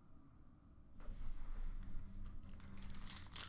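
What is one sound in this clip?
A glass case door slides and rattles close by.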